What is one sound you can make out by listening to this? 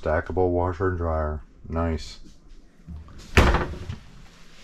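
A sliding door rolls and thumps shut.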